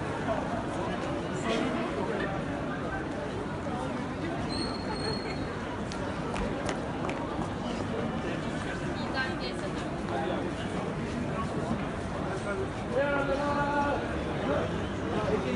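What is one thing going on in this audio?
A woman talks nearby in an animated voice.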